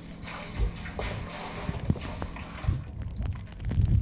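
Water splashes as a mug is dipped into a bucket.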